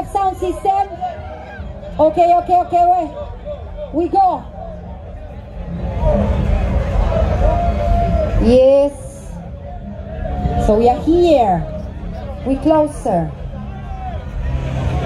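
Loud dance music with a deep thumping beat plays from loudspeakers outdoors.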